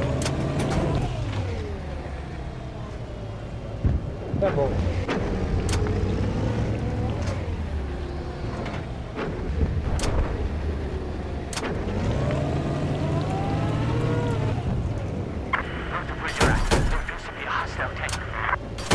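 A cannon fires in sharp, loud shots.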